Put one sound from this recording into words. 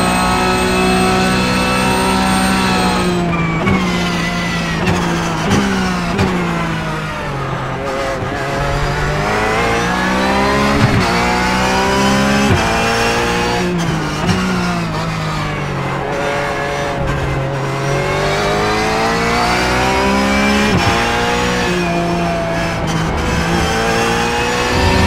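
A racing car engine roars close by, its pitch climbing and dropping sharply as the gears change.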